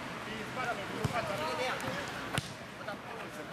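A ball is kicked with a sharp thump.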